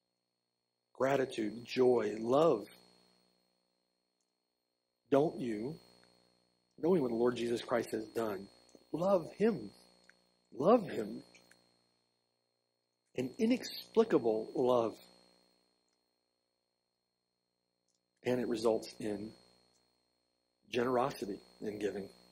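An older man speaks calmly through a microphone, in phrases with pauses.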